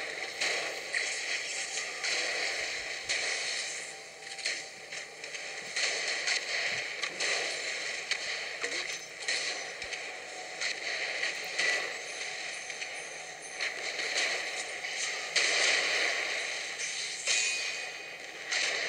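Gunfire and explosions crackle in bursts.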